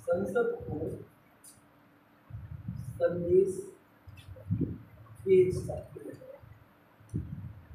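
A man speaks calmly in a slight echo, pausing between phrases.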